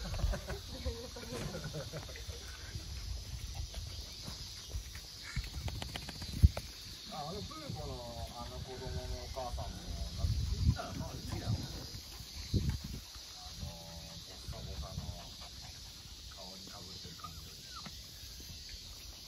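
Puppies scuffle and bump against the microphone.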